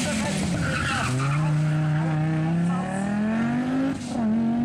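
A turbocharged five-cylinder Audi Quattro rally car accelerates away hard and shifts up a gear.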